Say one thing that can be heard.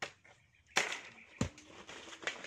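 A coconut drops and thuds on the ground.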